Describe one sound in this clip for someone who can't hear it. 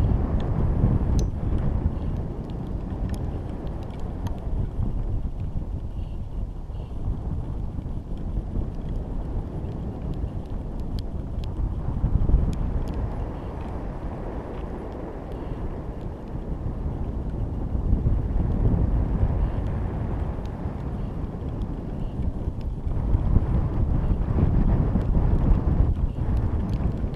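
Wind rumbles in gusts.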